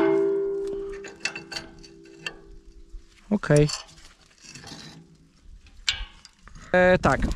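A gloved hand taps and knocks on metal harrow discs.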